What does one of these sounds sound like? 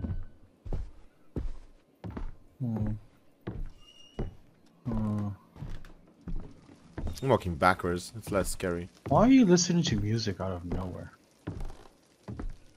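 Footsteps thud slowly on a wooden floor.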